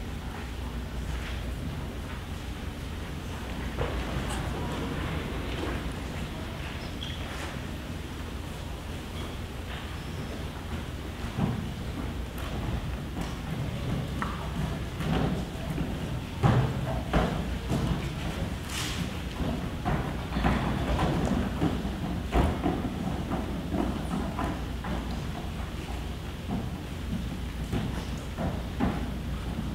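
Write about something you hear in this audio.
An audience of children chatters and murmurs in a large echoing hall.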